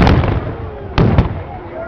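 A second musket blast cracks out.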